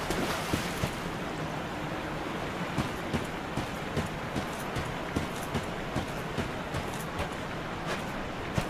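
Armoured footsteps clack on stone at a quick, even pace.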